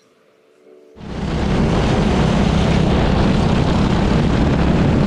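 A go-kart engine roars as the kart races along the track, heard from on board.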